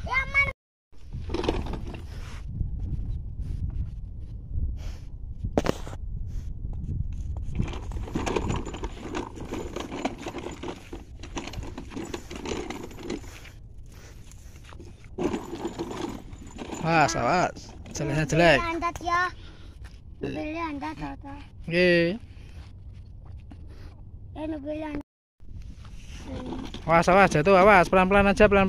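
A plastic toy truck rolls and rattles over gravel.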